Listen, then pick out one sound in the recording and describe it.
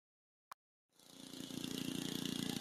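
A ride-on mower engine starts up and runs.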